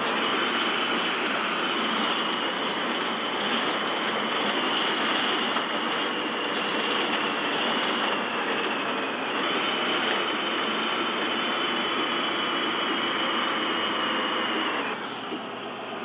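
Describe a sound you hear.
A bus engine drones steadily while driving, then quiets as the bus slows down.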